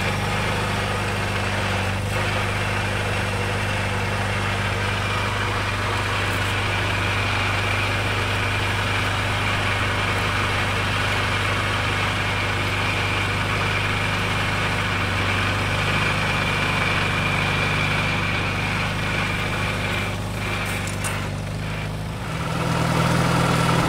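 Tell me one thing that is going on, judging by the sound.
Cultivator tines scrape and churn through dry soil.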